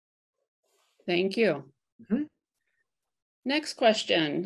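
A middle-aged woman speaks calmly through an online call.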